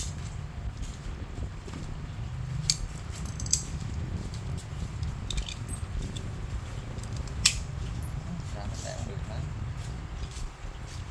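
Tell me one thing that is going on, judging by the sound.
A small knife scrapes and shaves wood by hand.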